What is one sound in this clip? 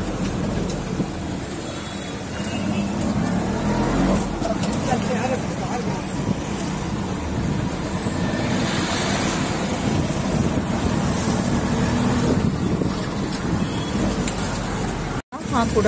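Tyres roll along a paved road.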